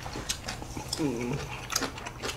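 A young man hums with pleasure while eating.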